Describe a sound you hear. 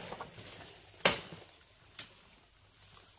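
Twigs snap sharply underfoot.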